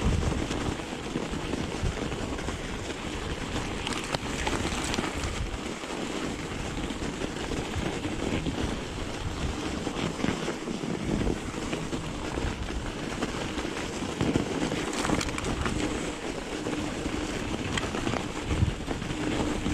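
Bike tyres crunch and hiss through deep snow.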